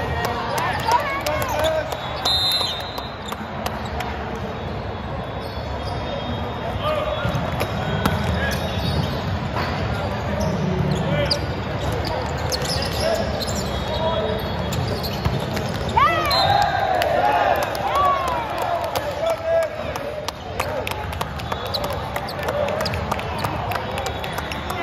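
Voices of players and onlookers echo through a large hall.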